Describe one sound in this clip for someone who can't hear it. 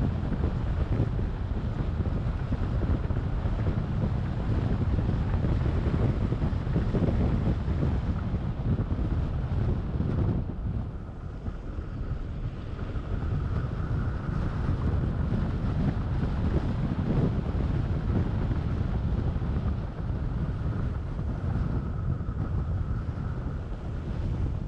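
Tyres roll and rumble on a paved road.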